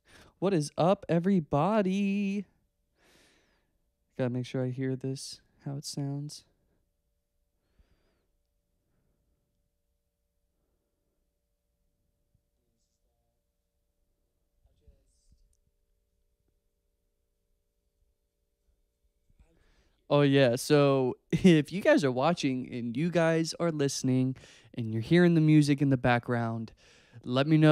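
A young man speaks close into a microphone, calmly with long pauses.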